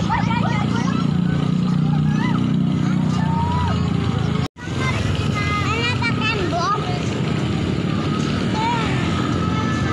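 Motorcycle engines hum as they ride past.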